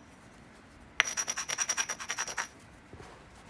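A stone scrapes rapidly along the edge of a glassy rock.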